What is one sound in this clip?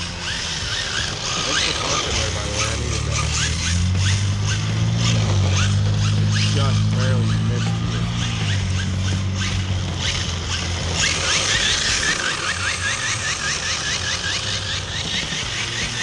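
Small remote-control cars whir and buzz as they race across pavement.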